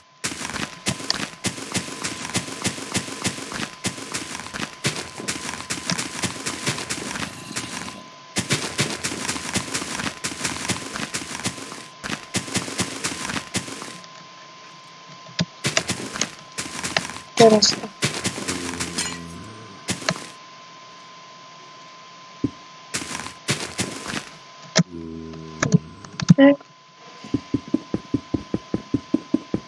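Leafy blocks crunch and rustle as they break in quick succession.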